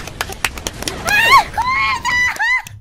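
A second young woman squeals excitedly through a microphone.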